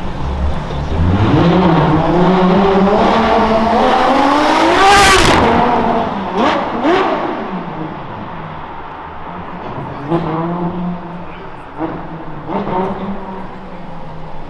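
A sports car engine revs loudly, rising in pitch as it roars past.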